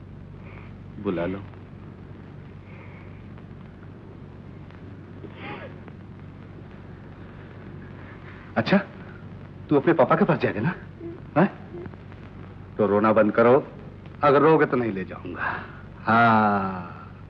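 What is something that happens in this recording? An elderly man speaks with feeling, close by.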